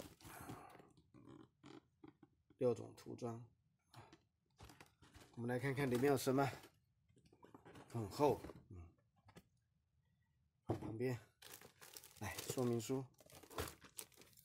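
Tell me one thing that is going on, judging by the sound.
A cardboard box scrapes and taps as it is handled.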